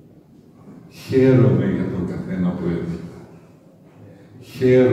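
An elderly man speaks calmly into a microphone, heard through a loudspeaker in an echoing room.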